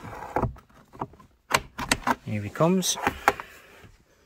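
A cable scrapes as it is pulled free.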